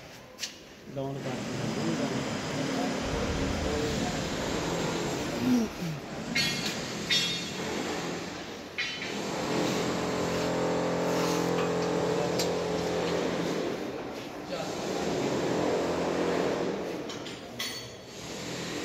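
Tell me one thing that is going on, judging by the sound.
A heavy metal machine rumbles and rattles as it is pushed on small wheels across a hard floor.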